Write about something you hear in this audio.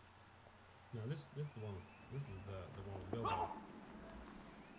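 A man talks at a distance outdoors.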